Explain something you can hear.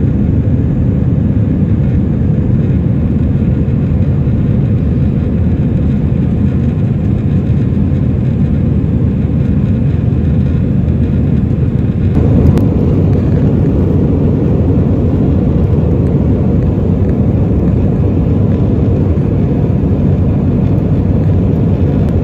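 Jet engines roar steadily in a loud, low rumble inside an aircraft cabin.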